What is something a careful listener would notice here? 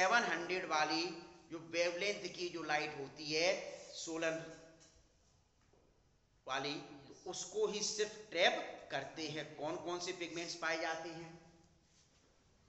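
A man speaks with animation close by, explaining.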